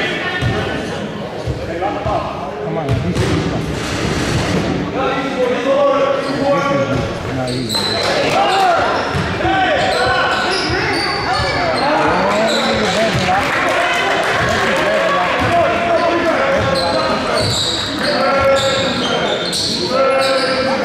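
Young players shout and call out to each other in an echoing gym.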